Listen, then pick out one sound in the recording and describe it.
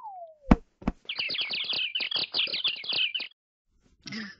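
Cartoon birds chirp and tweet quickly.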